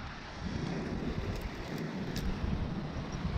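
Climbing gear jingles and clinks.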